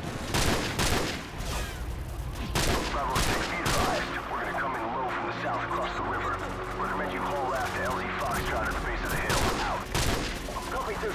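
Rifle shots crack sharply several times.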